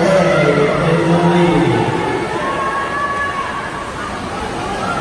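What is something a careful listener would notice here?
Swimmers splash steadily through the water.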